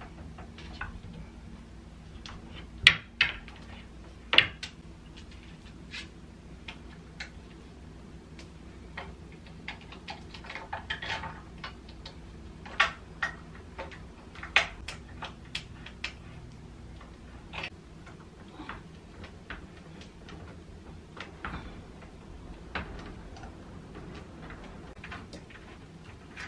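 Wooden parts knock and click sharply now and then.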